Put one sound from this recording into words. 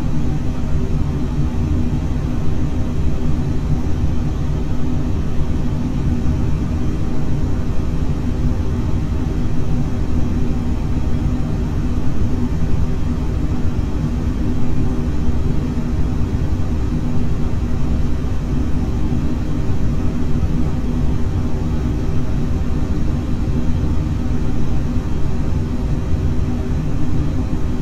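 A jet engine roars steadily and deeply throughout.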